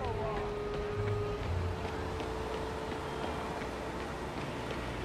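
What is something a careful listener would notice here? Car engines hum as traffic drives along a busy street.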